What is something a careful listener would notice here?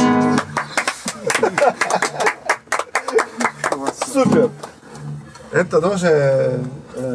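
A man sings into a microphone nearby.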